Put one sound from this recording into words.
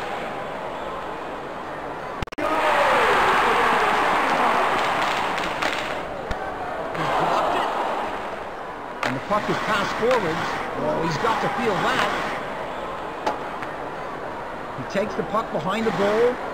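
A crowd roars and cheers in a large echoing arena.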